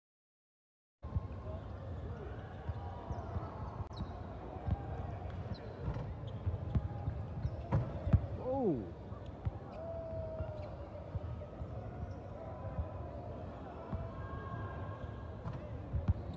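Basketballs bounce on a wooden floor in a large echoing gym.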